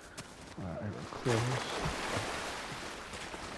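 Water splashes as feet run through a shallow stream.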